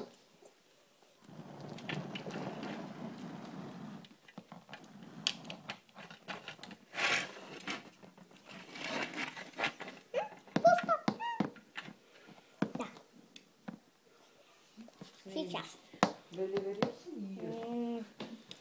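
Plastic toys clatter and knock as a hand moves them.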